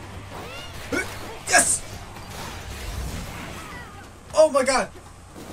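A man talks excitedly into a close microphone.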